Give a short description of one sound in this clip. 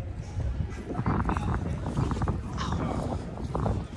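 Footsteps tap on cobblestones nearby.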